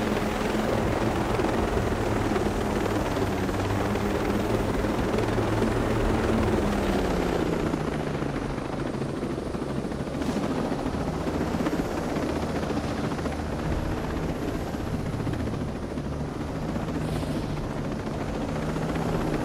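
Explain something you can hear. A helicopter's rotor thumps and its engine drones steadily.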